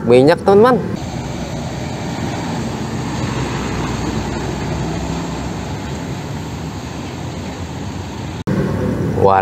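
A heavy truck engine rumbles as the truck drives past.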